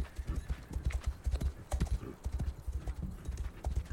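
A horse gallops over sand.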